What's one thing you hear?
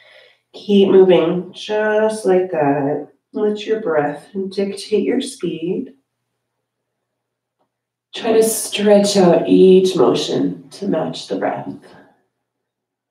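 A woman speaks calmly and instructively through a close microphone.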